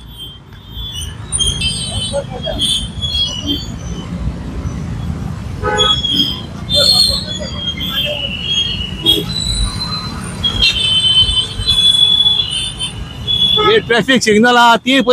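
Traffic rumbles along a wet street.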